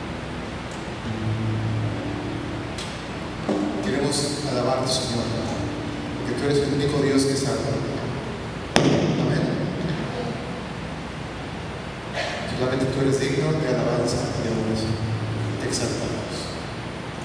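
A woman sings a worship song through loudspeakers in an echoing hall.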